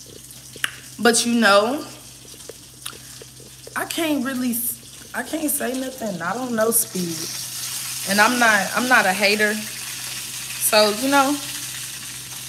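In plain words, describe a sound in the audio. A young woman talks expressively, close to a phone's microphone.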